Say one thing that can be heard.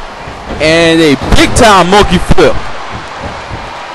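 Heavy bodies slam onto a wrestling mat.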